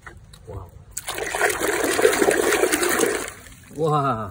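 Water sloshes and splashes in a tub.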